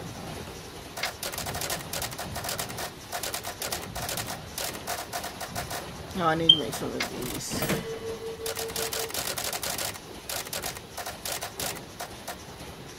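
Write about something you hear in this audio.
Game menu buttons click in quick bursts.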